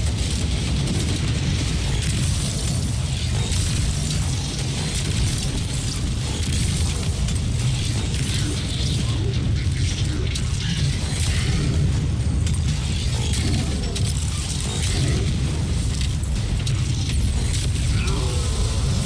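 Rapid gunfire bursts over and over.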